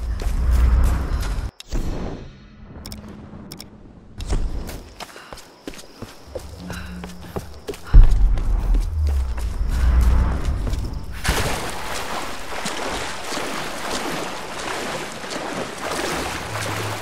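Footsteps crunch on forest ground.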